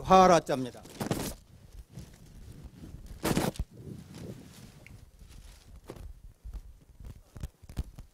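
Paper rustles as an older man handles a large sheet.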